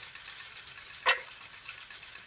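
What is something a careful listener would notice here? A metal gear clicks into place.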